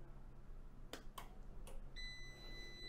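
A switch clicks.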